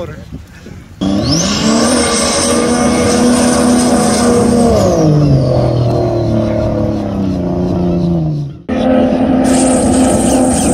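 Jet ski engines roar and whine as they race past at speed.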